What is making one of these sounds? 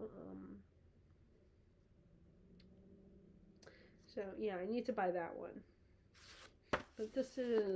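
A young woman speaks close by, calmly reading aloud.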